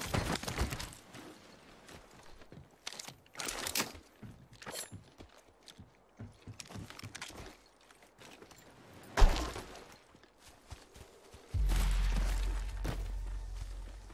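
Footsteps patter on hard ground and grass as a game character runs.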